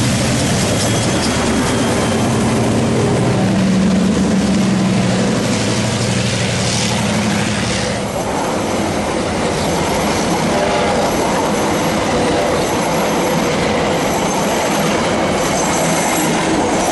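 Train wheels clatter and squeal on rails as carriages roll past.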